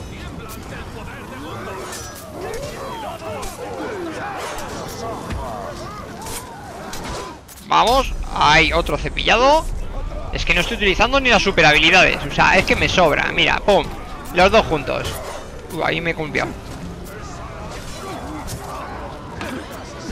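Blades clash and strike again and again in a fight.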